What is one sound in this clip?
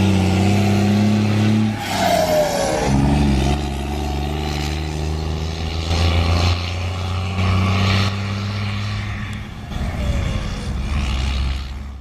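A truck's diesel engine roars and labours as the truck pulls away.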